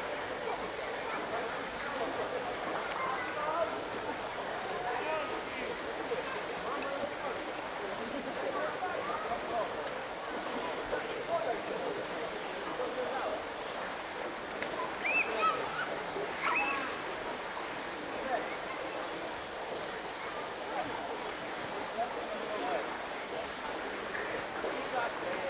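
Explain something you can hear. Water splashes as people swim and jump.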